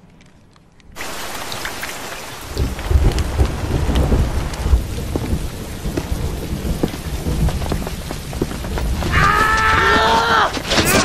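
Heavy rain patters onto water and leaves.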